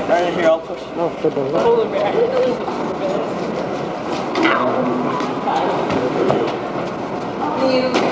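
Small wheels of a child's walker roll over a hard floor.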